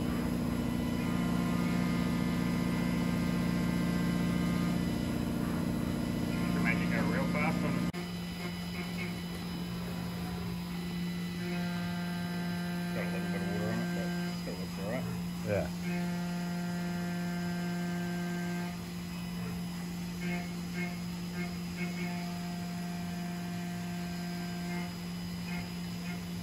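A milling machine cutter whines steadily as it cuts metal.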